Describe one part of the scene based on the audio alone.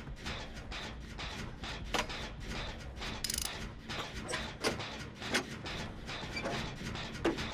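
A machine clanks and rattles as it is worked on.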